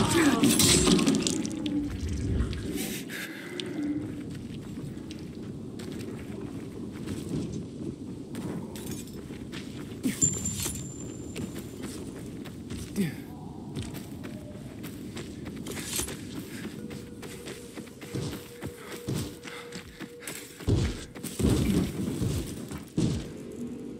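Footsteps crunch quickly over rubble and gravel.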